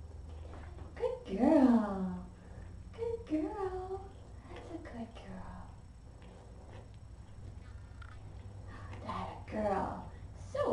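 A kitten meows loudly and repeatedly, close by.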